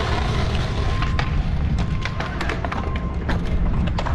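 A skateboard clatters onto concrete.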